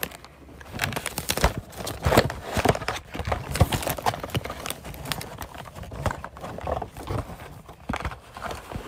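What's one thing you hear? A man speaks softly and closely into a microphone, his voice muffled by a mask.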